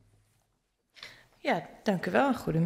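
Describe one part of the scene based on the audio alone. A woman speaks through a microphone in a large hall.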